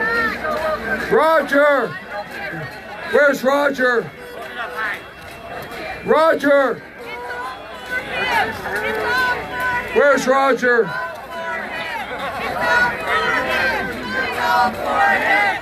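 A crowd of men and women murmur and talk among themselves outdoors.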